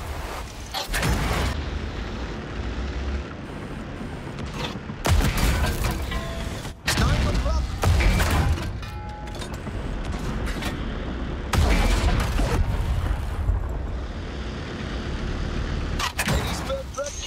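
Tank cannon shots boom loudly.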